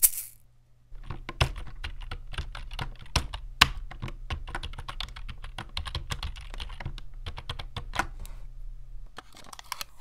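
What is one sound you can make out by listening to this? Fingers type rapidly on a keyboard with soft clicking keys.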